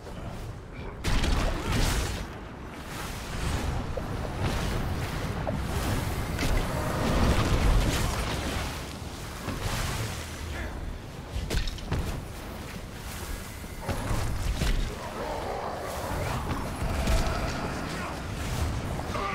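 Spell effects and weapon hits crash and whoosh in a fast game battle.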